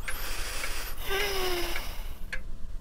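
A young girl yawns sleepily.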